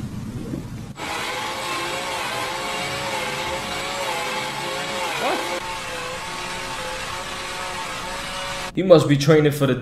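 An electric drill whirs steadily.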